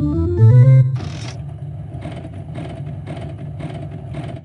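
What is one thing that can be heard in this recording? Slot machine reels spin with a steady rattling whir.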